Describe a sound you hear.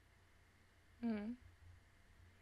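A young woman hums briefly close to a microphone.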